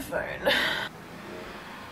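A young woman yawns loudly close by.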